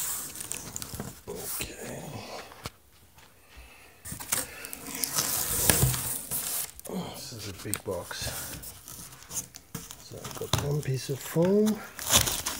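Cardboard box flaps rustle and scrape close by.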